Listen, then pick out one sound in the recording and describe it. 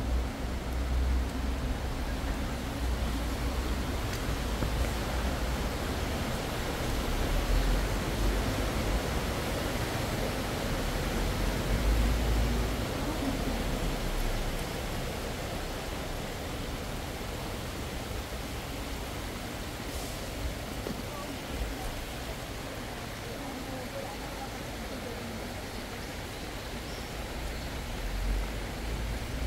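Steady rain falls and patters on wet pavement outdoors.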